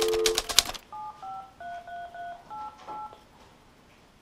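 Phone keypad buttons beep as a number is dialled.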